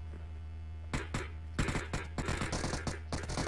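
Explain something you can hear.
Rapid gunshots crack in short bursts.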